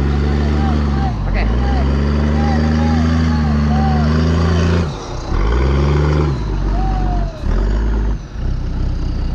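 A vehicle engine revs hard and labours.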